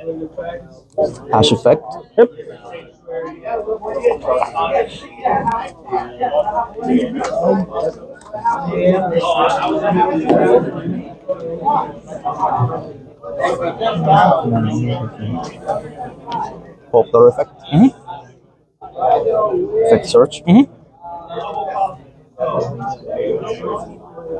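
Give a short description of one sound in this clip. Playing cards are shuffled and tapped onto a table.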